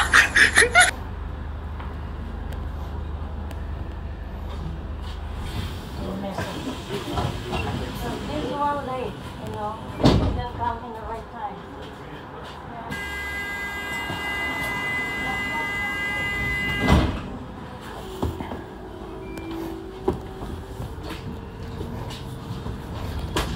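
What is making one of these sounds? A double-decker bus rumbles as it drives along a road.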